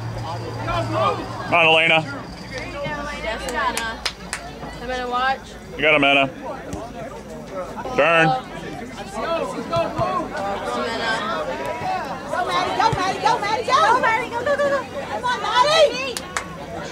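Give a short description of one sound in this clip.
Adult spectators talk nearby outdoors.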